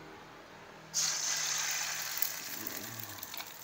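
Batter sizzles as it hits a hot pan.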